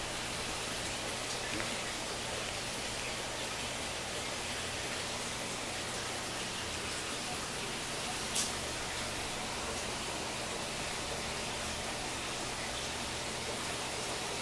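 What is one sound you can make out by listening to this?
Air bubbles stream and gurgle steadily in a water tank.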